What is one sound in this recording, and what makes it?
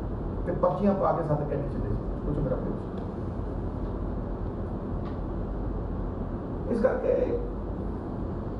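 A middle-aged man speaks calmly into microphones, close by.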